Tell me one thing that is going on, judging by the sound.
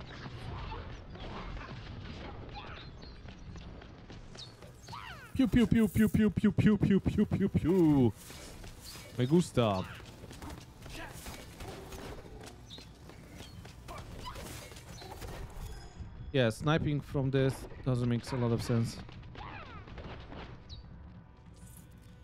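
Magic blasts burst and crackle in a fast fight.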